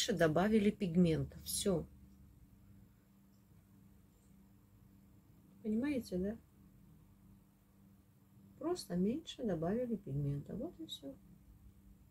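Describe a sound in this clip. A woman talks calmly and close by, in short bursts with pauses.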